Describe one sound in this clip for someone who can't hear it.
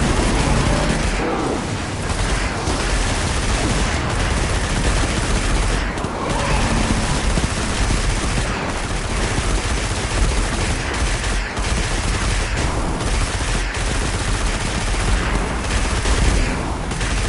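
Energy weapons fire in rapid bursts.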